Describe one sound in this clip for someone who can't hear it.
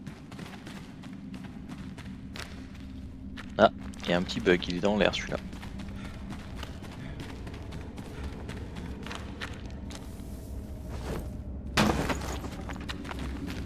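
Footsteps crunch over dirt and dry grass.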